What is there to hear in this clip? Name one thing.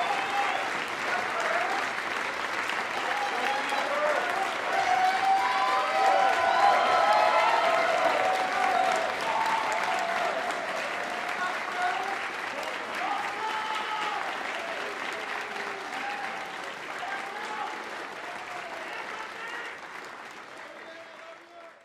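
An audience applauds loudly in a large hall, slowly fading.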